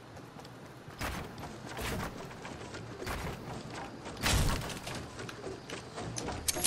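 Wooden building pieces snap into place with hollow knocks.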